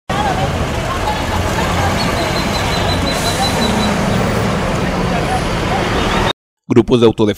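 A pickup truck's engine rumbles as it drives along a busy road.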